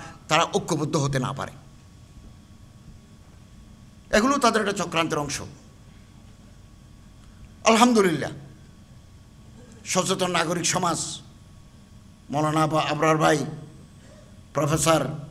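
An elderly man preaches forcefully through a microphone and loudspeakers, in short bursts with pauses.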